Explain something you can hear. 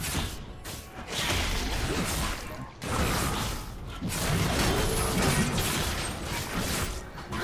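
Magic spells whoosh and crackle during a fast video game battle.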